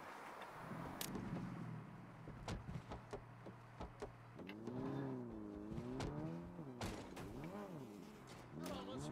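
A car engine hums and revs as it drives off.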